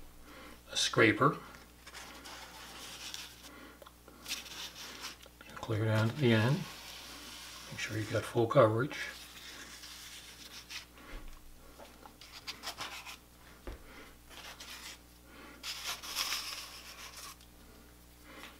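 A plastic card scrapes and smooths wet plaster.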